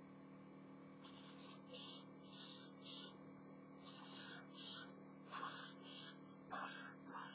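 A marker squeaks and scratches across paper in quick strokes.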